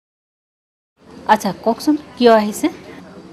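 A middle-aged woman speaks with feeling, close by.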